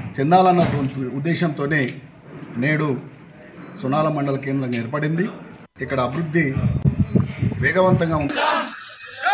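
A middle-aged man speaks steadily into a microphone, close by.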